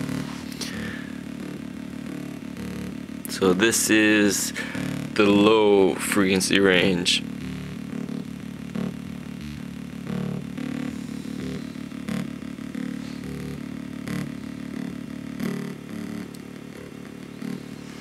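An electronic synthesizer circuit hums with a low, steady drone.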